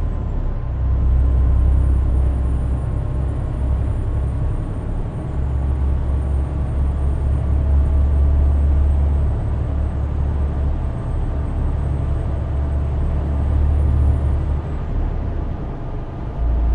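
Tyres roll on the road with a steady rumble.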